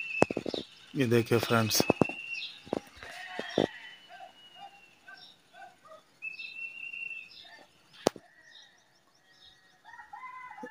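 A flock of birds calls overhead.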